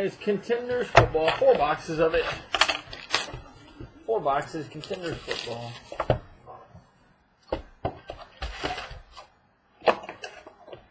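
Cardboard boxes knock softly as they are set down on a table.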